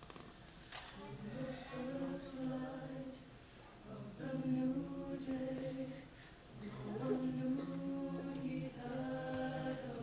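A choir sings in phrases, heard from the audience in a large echoing hall.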